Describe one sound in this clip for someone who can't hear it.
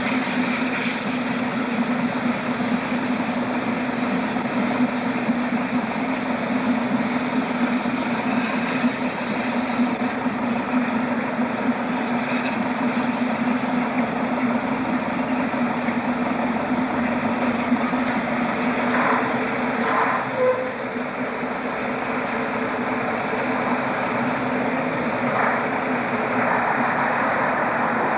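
Steam hisses from a steam locomotive.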